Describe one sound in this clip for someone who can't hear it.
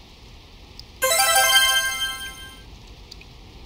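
A bright chiming jingle rings out and fades.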